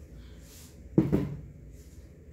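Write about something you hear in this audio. A painted canvas is set down on a table with a soft thud.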